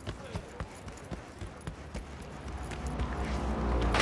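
Footsteps tap on hard pavement.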